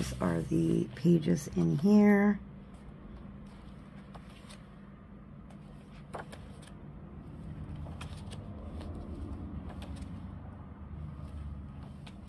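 Pages of a paper book rustle and flip as they are turned.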